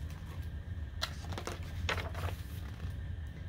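Paper pages rustle as they turn.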